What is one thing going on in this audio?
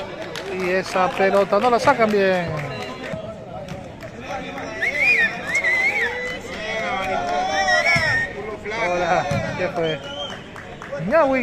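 Several men shout and chatter loudly outdoors.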